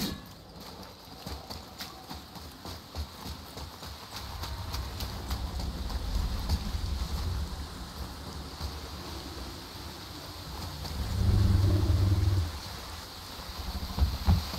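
Heavy footsteps crunch on gravel and stone.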